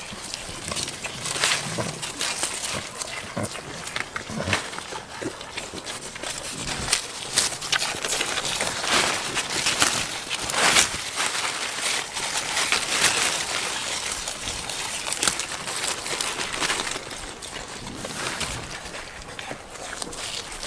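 Leaves rustle as goats pull at branches.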